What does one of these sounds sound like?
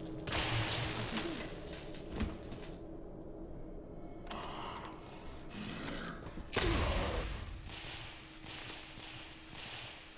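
Electric sparks crackle and buzz.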